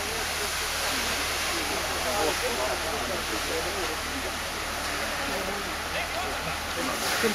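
A large fire roars steadily.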